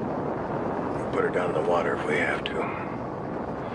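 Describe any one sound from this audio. A younger man speaks calmly nearby.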